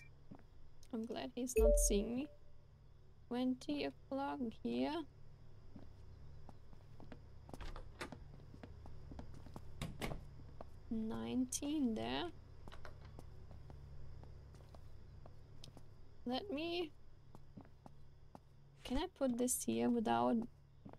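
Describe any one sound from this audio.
A young woman talks casually into a close microphone, in short bursts.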